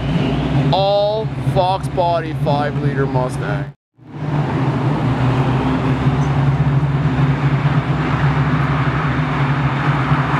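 Traffic hums steadily on a city street.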